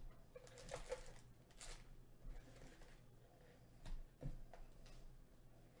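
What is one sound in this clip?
Cardboard box flaps scrape and tap.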